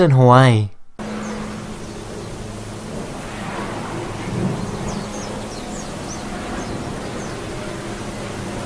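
Lava roars and spatters as it bursts from the ground.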